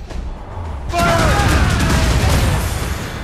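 A ship bursts apart in a loud explosion.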